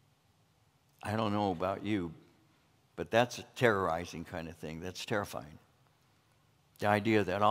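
An elderly man speaks calmly and clearly into a microphone, with pauses.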